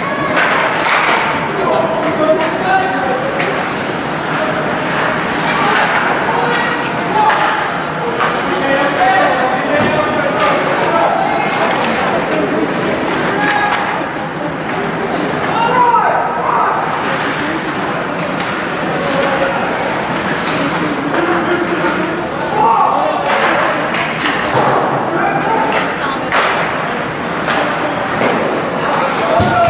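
Spectators chatter nearby in an echoing ice rink.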